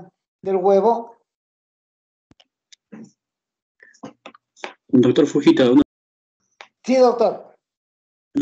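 An elderly man speaks in short bursts over an online call.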